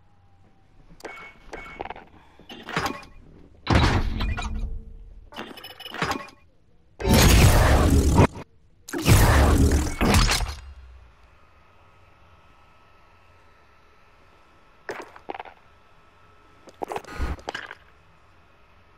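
Menu sound effects whoosh and chime in short bursts.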